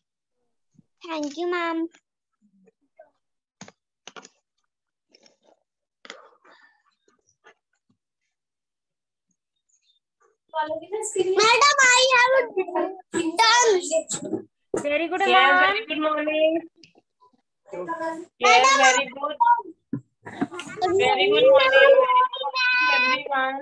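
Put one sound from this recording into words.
A young child speaks close to a phone microphone.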